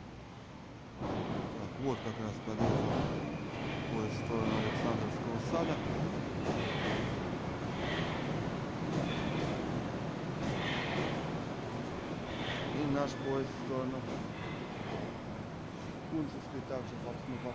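A metro train rumbles loudly into the station, echoing in a large hall.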